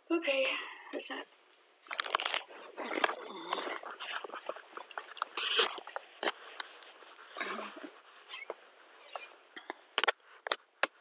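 An elderly woman talks calmly close to a microphone.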